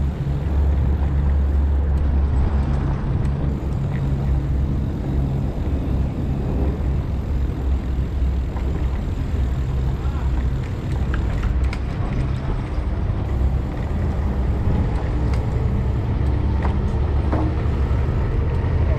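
A scooter motor hums steadily.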